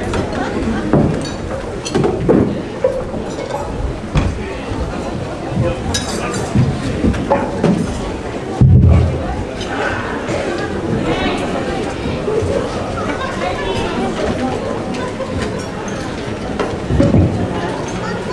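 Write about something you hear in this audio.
Drums beat with heavy thumps.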